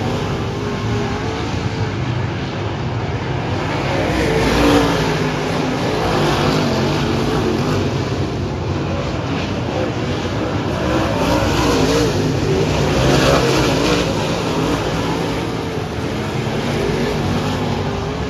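Race car engines roar and whine as the cars race around a dirt track outdoors.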